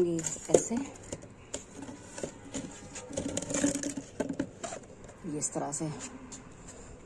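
A plastic tube scrapes and knocks against a plastic cup.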